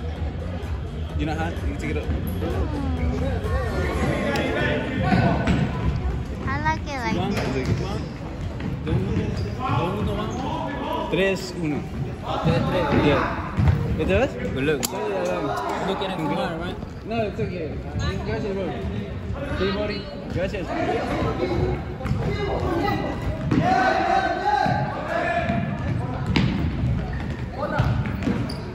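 A ball thumps against the floor and walls.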